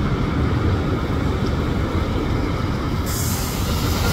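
A van drives past.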